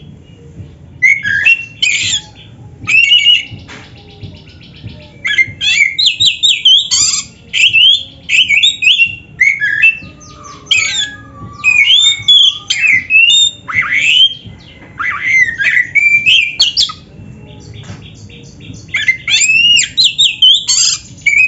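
A songbird sings loud, varied whistling phrases in bursts.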